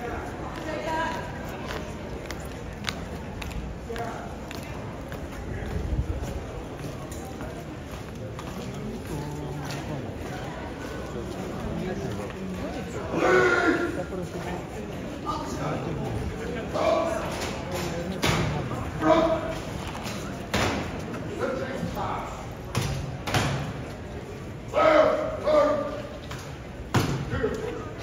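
Boots stamp and march on stone, echoing under an archway.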